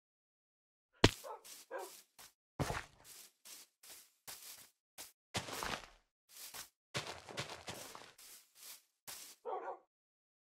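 Dirt crunches repeatedly as blocks are dug away.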